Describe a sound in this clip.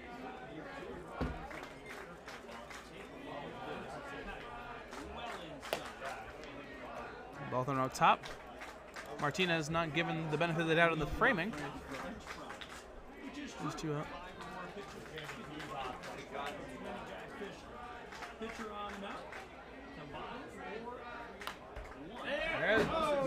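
A crowd murmurs in the stands outdoors.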